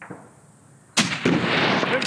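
A rifle fires a single loud shot outdoors.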